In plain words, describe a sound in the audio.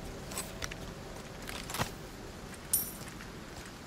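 Short soft clicks sound as items are picked from a menu.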